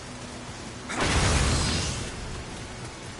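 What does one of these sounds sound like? A sword strikes an enemy with a burst of sparks.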